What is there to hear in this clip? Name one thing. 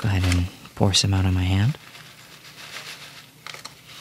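Dry crispy noodles rattle softly as they pour into a hand.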